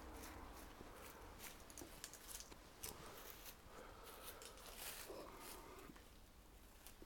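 Small shears snip through thin twigs.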